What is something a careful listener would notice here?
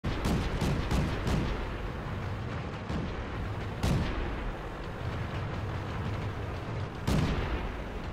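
Tank guns fire with loud booms.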